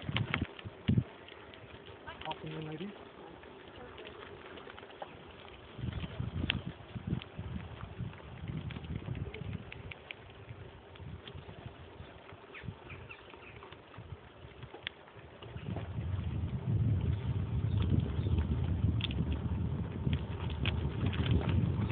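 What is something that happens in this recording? Bicycle tyres crunch along a gravel path.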